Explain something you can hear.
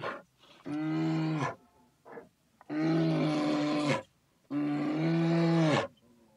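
Young bears make loud, long droning moans in repeated bursts.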